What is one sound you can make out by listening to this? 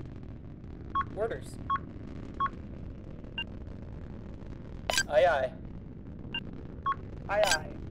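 Short electronic beeps sound now and then.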